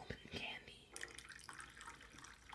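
Tea pours and splashes into a cup.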